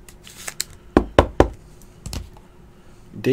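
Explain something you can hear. Plastic card holders click and tap as hands handle them.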